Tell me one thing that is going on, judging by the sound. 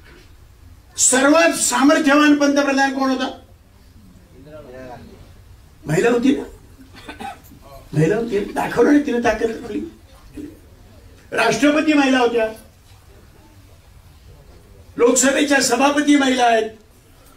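An elderly man speaks forcefully into a microphone, in bursts with pauses.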